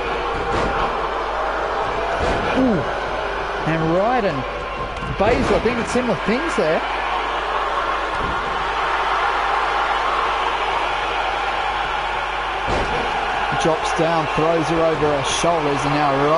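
Bodies slam heavily onto a wrestling ring mat.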